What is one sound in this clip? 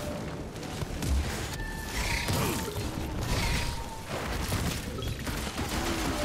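Magic blasts zap and crackle in quick bursts.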